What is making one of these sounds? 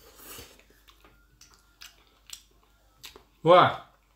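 A man smacks his lips while eating.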